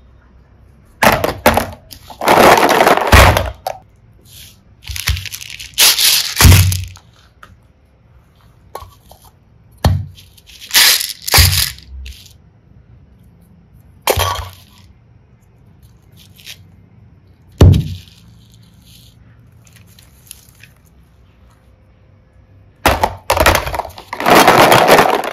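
Plastic toys clatter and rattle against each other in a basket.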